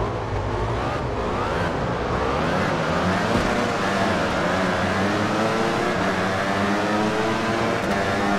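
Racing motorcycle engines whine loudly, rising in pitch as they speed up.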